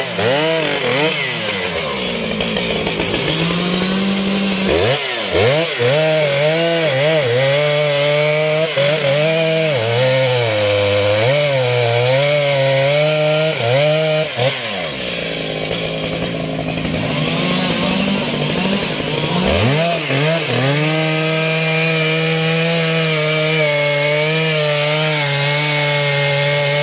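A chainsaw engine roars loudly, revving up and down as it cuts through wood.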